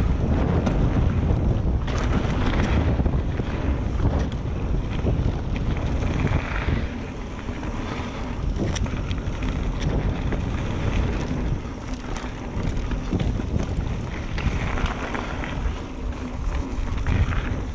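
A bicycle frame and chain clatter over bumps.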